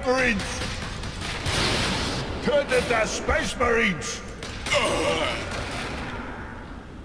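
A gun fires rapid loud shots.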